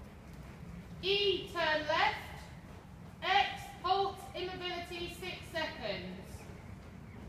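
A woman speaks loudly nearby.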